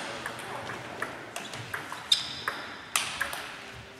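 Players' shoes squeak on a wooden floor.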